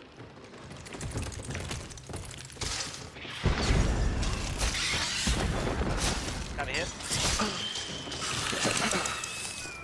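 A large creature shrieks and thrashes close by.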